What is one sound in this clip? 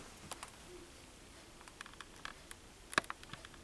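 A young boy speaks quietly, close by.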